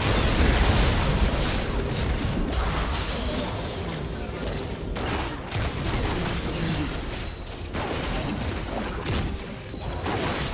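Game spells and attacks crackle and burst in a fight.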